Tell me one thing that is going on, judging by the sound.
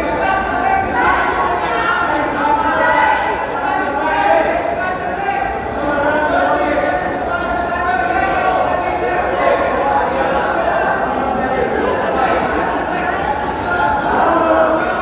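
A crowd of spectators chatters and shouts throughout in a large echoing hall.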